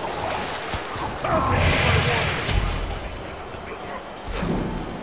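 Game weapons clash and spells burst in quick succession.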